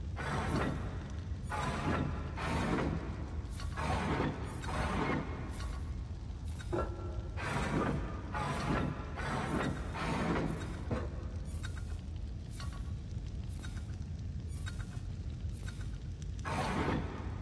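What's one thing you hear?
Heavy wooden rings scrape and grind as they turn.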